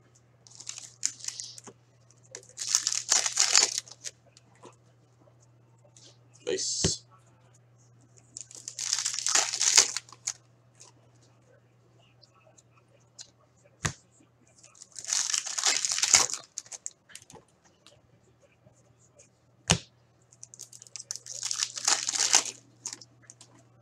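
A foil wrapper crinkles and tears open in bursts.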